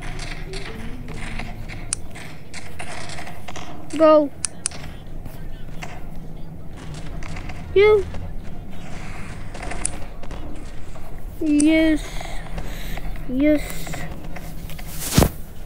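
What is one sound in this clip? Figures' feet thud and clatter as they walk.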